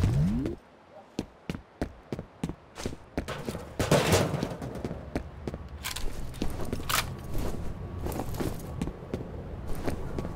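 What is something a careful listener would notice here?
Footsteps scuff on hard ground.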